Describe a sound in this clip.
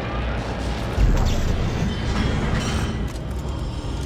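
A heavy metal door mechanism clanks and whirs open.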